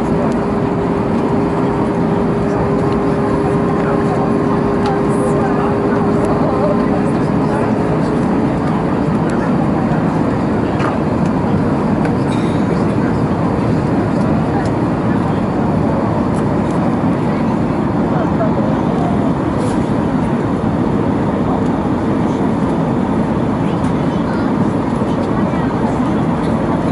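Air rushes loudly past an airplane's body.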